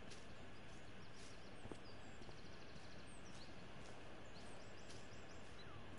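Footsteps tread lightly on a path.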